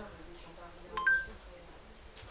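A phone gives a short electronic beep.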